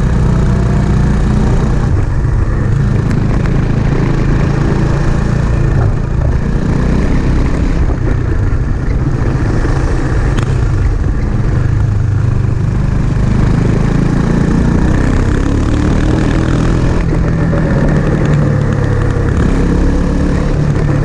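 A motorcycle engine drones steadily as it rides along, its pitch rising and falling.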